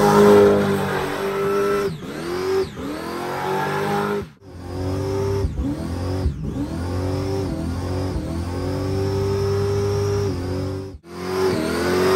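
Tyres squeal loudly on pavement.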